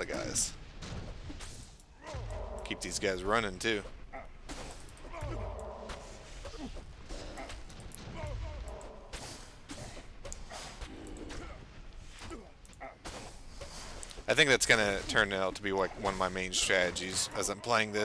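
Weapons clash and strike in a fight.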